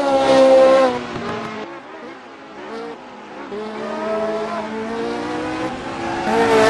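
A racing car engine revs high, dropping and rising in pitch as it shifts gears.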